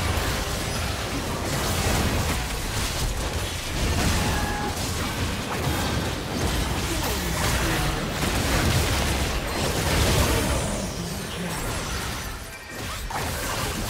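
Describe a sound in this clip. Magic blasts and clashing weapons crackle and boom in a busy fight.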